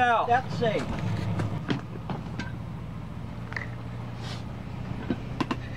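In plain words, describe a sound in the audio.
Footsteps thump and knock on a small boat's hull.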